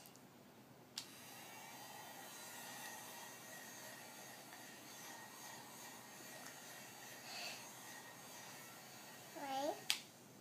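A toy hair dryer whirs steadily.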